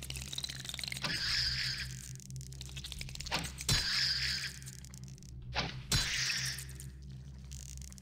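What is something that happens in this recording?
A bowstring creaks as a bow is drawn and held.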